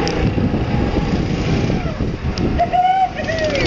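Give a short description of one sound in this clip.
A go-kart engine buzzes as the kart drives closer.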